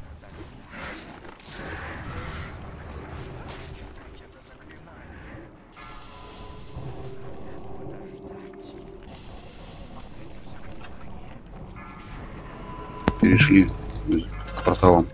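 Spell effects crackle and whoosh in a fantasy battle game.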